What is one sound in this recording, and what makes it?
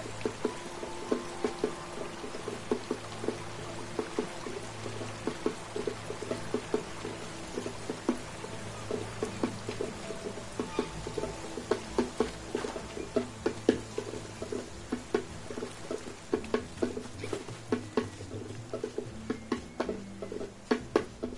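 Footsteps patter quickly on stone and grass.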